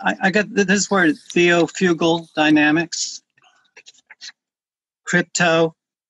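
An elderly man speaks over an online call.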